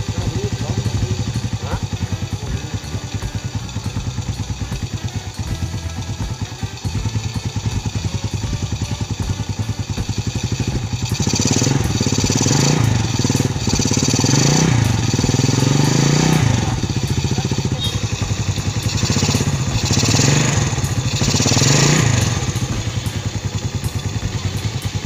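A small motorcycle engine idles with a fast, steady putter, close by.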